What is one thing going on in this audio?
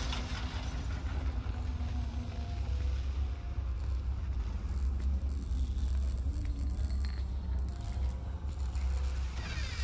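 Soft footsteps shuffle slowly across a hard tiled floor.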